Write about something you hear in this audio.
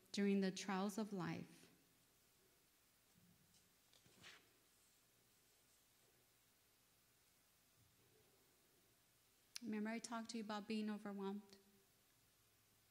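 A woman speaks calmly into a microphone, reading out with pauses.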